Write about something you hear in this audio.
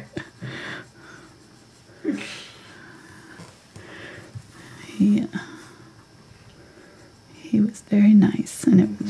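A paintbrush strokes softly across canvas.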